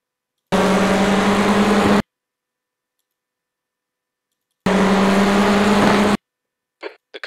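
Racing car engines roar loudly.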